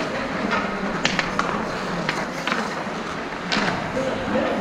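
Hockey sticks clack sharply against the ice and a puck.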